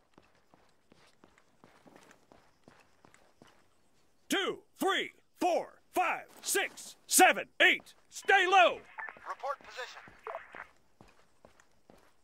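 Footsteps run quickly on a paved road.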